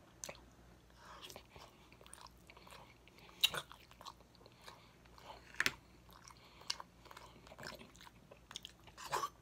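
A man chews and smacks his lips close by.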